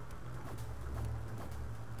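A fighter's kick lands with a thud.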